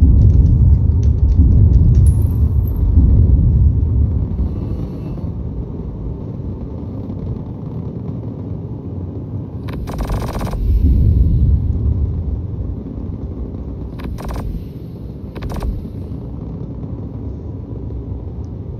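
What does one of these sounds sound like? A spacecraft engine rumbles low and steadily, swelling and easing.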